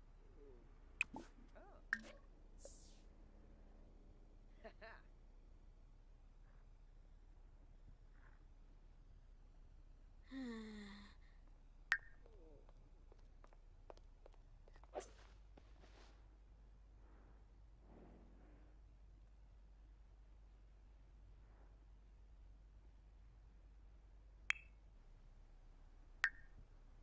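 Short game interface clicks sound now and then.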